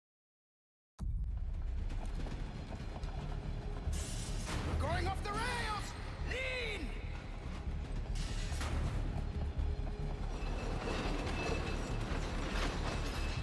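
A minecart rattles and rumbles loudly along rails.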